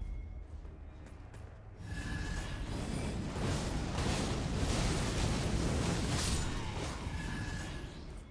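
A sword slashes and clangs.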